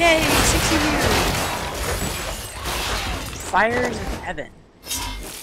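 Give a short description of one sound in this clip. Magic blasts and crackling explosions ring out in a fast fight.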